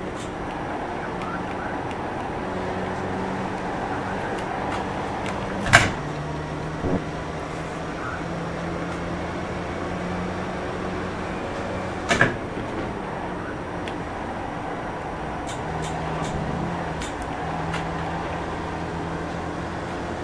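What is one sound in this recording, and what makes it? A race car engine drones steadily through loudspeakers, shifting pitch as it accelerates and brakes.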